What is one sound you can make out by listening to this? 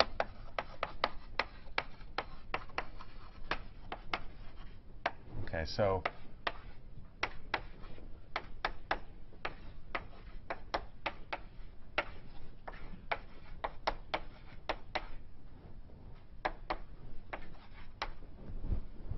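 Chalk taps and scrapes quickly on a blackboard.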